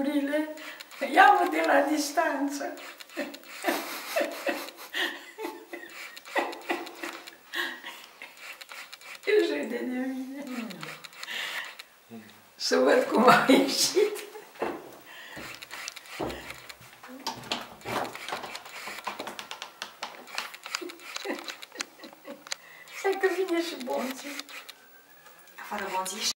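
An elderly woman talks and laughs cheerfully close by.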